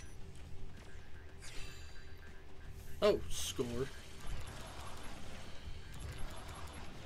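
Fighting sound effects whoosh and crash in a video game.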